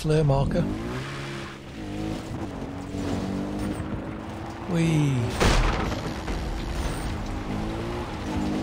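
A quad bike engine hums steadily as it drives over rough ground.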